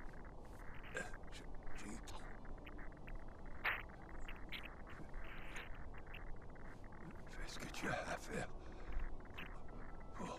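An injured elderly man speaks weakly and haltingly, close by.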